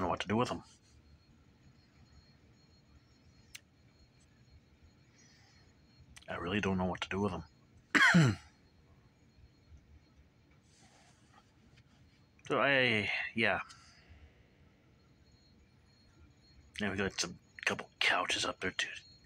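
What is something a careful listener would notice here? A middle-aged man speaks close to a phone microphone, in short bursts with pauses.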